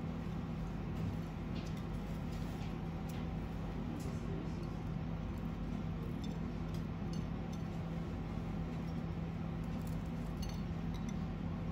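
Crisp cheese wafers tap and scrape lightly against a ceramic plate.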